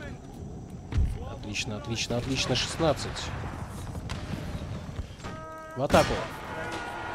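Muskets fire in a ragged volley.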